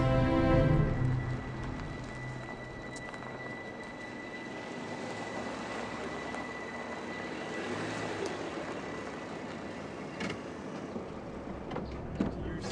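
A car engine rumbles as a car rolls closer over gravel.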